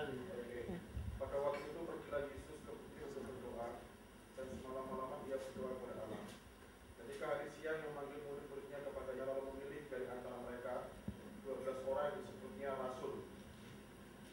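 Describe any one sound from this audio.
An elderly woman speaks calmly nearby.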